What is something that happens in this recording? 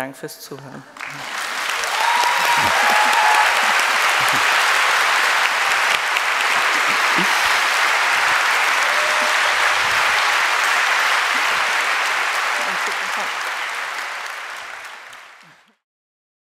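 A large audience applauds loudly, then the applause slowly fades.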